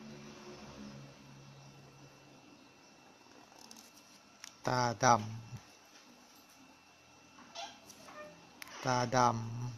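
A felt-tip pen scratches softly across paper.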